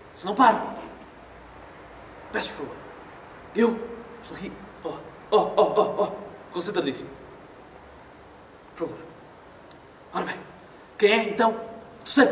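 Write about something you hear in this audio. A young man speaks with animation into a microphone, heard in a reverberant hall, in bursts with pauses.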